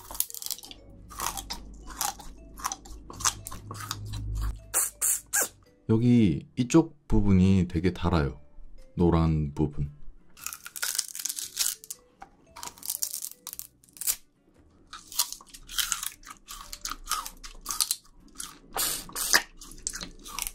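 A man crunches and chews something fibrous close to a microphone.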